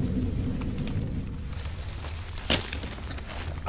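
Dry branches rustle and snap close by.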